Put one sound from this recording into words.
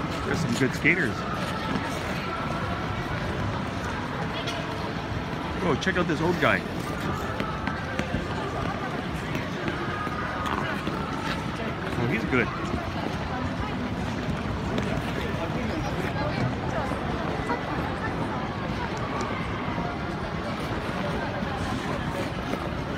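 A crowd of skaters chatters in a large echoing hall.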